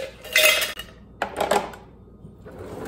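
Ice cubes clatter into a metal cup.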